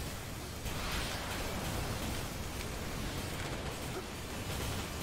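Jet thrusters roar steadily as a robot flies.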